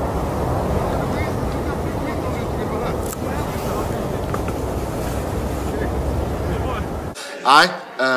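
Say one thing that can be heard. A man speaks sternly outdoors.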